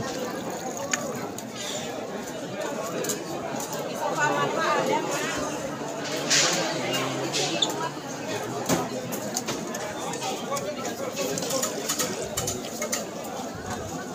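Water pours from a tap into a plastic cup.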